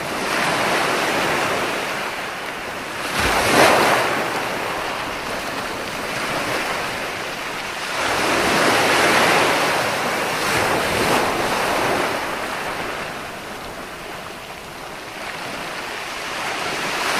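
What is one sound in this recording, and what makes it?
Foamy surf hisses as it spreads up the beach.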